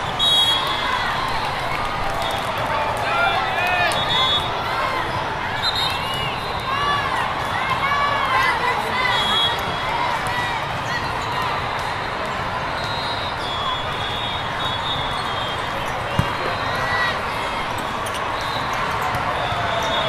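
A large crowd murmurs and chatters in a big echoing hall.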